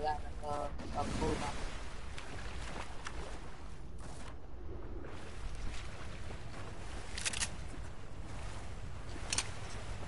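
Water splashes as a game character swims.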